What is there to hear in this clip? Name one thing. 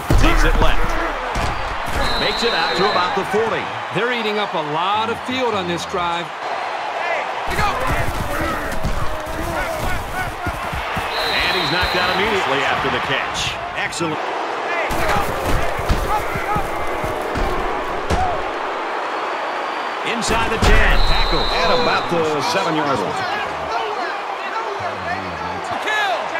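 A large crowd roars and cheers throughout.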